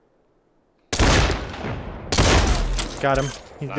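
Gunshots from a video game fire in loud bursts.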